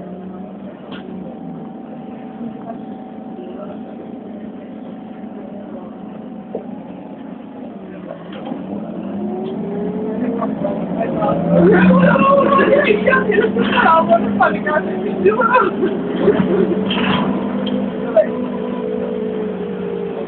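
A vehicle engine hums steadily from inside, then rises in pitch as the vehicle speeds up.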